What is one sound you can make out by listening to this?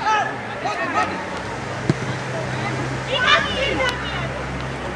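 Young players call out to each other in the distance outdoors.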